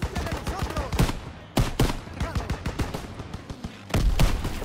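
A rifle fires loud single shots close by.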